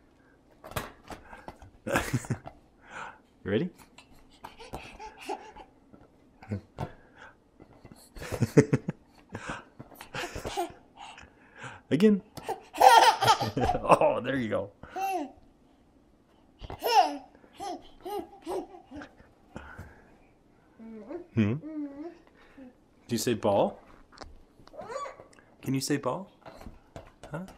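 A toddler girl babbles excitedly close by.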